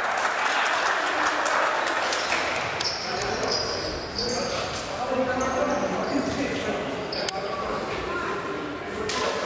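A crowd murmurs and calls out in a large echoing sports hall.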